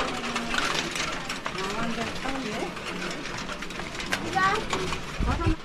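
Metal prayer wheels rumble as a hand spins them.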